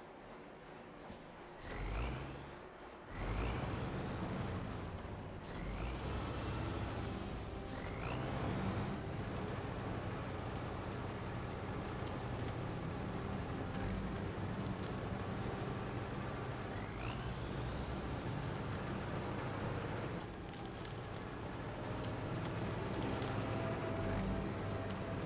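Tyres crunch over snow and rocks.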